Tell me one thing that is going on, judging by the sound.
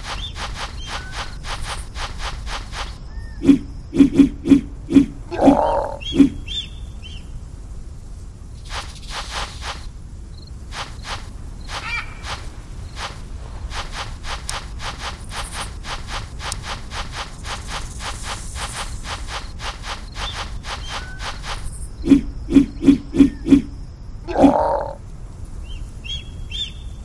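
Big cats' paws patter quickly and steadily on sand.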